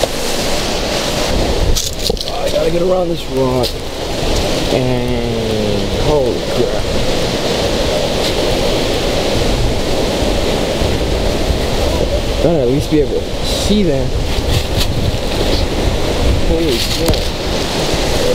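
Footsteps crunch on dry leaves and rocks.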